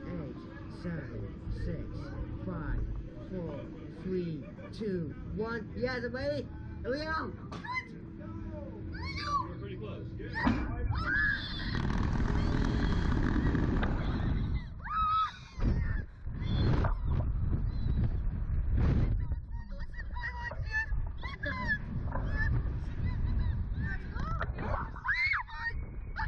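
A young man talks and laughs excitedly close by.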